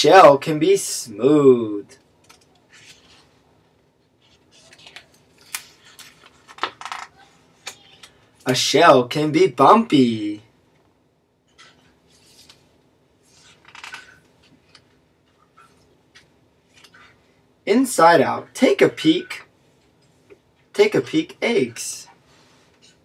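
A man reads aloud calmly, close by.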